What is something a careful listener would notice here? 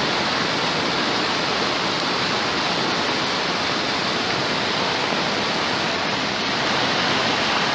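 Floodwater rushes and roars loudly nearby.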